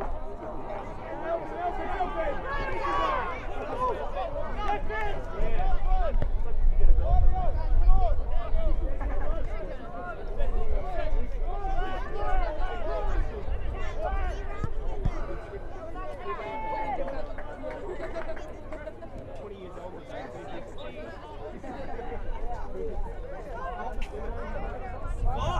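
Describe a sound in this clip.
Players shout to each other across an outdoor pitch.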